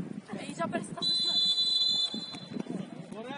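A referee's whistle blows a long steady blast.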